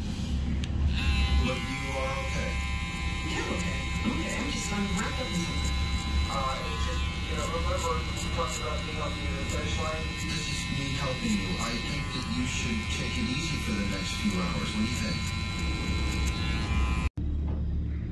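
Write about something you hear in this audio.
Electric hair clippers buzz steadily against hair.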